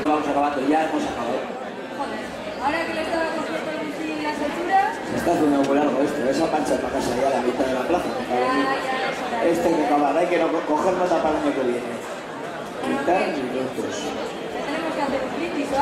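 A young woman speaks with animation on a stage in a large hall.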